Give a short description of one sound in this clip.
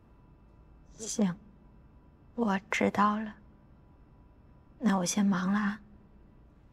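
A young woman talks calmly on a phone.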